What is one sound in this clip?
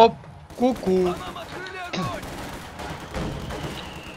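Gunfire rattles in short bursts.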